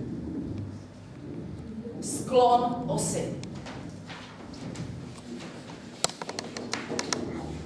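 A woman speaks calmly to a class in a small room.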